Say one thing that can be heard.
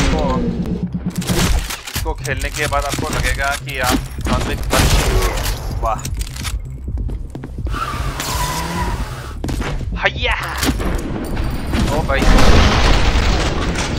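An explosion bursts with a heavy roar.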